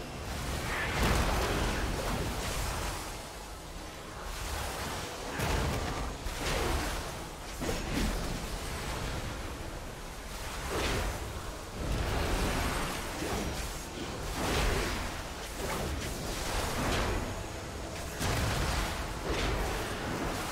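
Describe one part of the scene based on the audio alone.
Magic spells whoosh and crackle in repeated bursts.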